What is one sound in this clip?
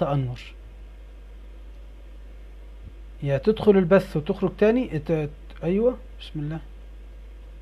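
A young man speaks calmly, close to a phone microphone.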